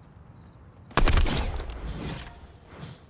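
An assault rifle fires a shot.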